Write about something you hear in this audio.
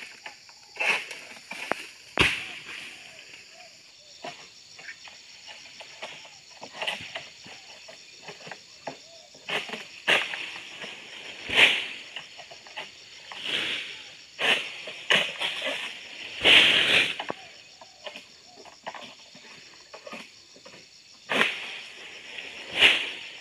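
Palm fronds rustle and shake in short bursts.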